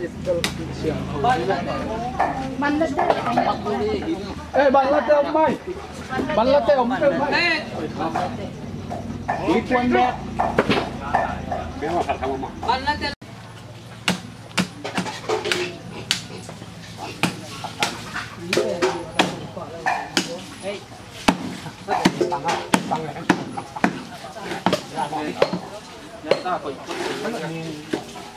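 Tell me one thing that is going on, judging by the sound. Several men talk loudly with one another.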